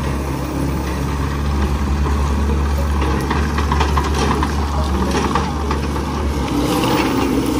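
Tracks crunch over gravel as a small loader drives forward.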